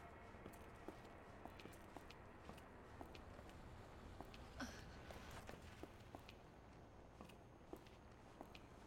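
Footsteps tap softly across a hard floor.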